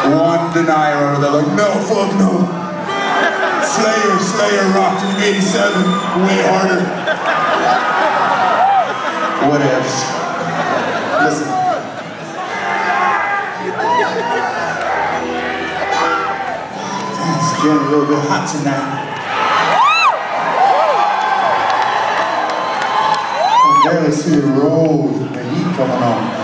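A man sings into a microphone over loudspeakers, in a large hall.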